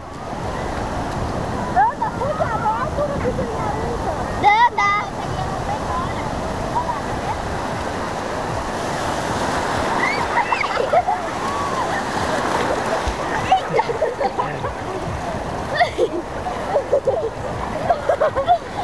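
Waves wash and splash steadily, heard outdoors.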